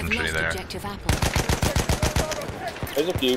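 A rifle fires in quick bursts.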